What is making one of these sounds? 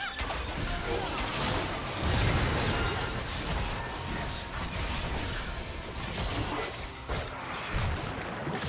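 Characters' weapons strike with sharp hits.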